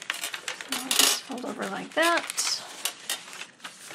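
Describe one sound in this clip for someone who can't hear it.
Paper pages rustle and flap as they are turned.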